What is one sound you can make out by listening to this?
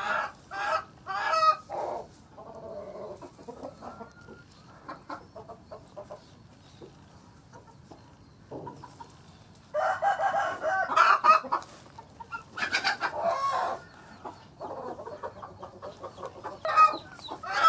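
Straw rustles softly.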